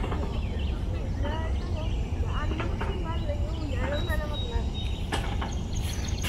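A young woman talks softly nearby.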